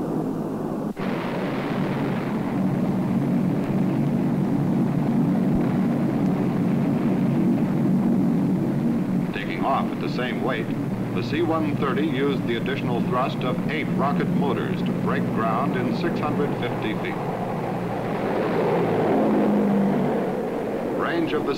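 Propeller engines of a large plane roar steadily.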